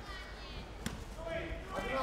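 A kick thuds against a padded body protector.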